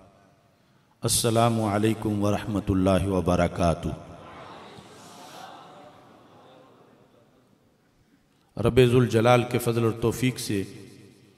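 A man speaks with emotion into a microphone, heard through a loudspeaker in a large hall.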